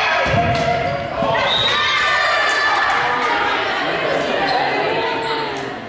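Young women call out to each other across a large echoing gym.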